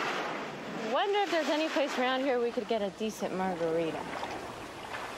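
A young woman sings softly nearby.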